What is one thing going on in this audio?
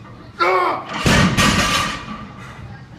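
A loaded barbell drops and thuds heavily on the floor.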